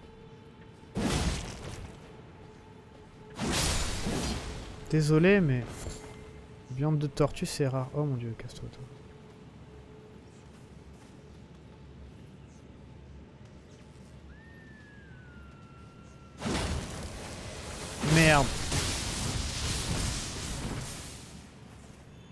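A blade swings and slashes with heavy whooshes.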